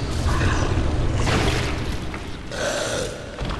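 A body thuds onto a stone floor.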